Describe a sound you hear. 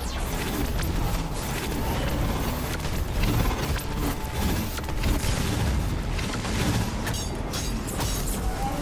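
Weapon shots crack and boom in quick bursts.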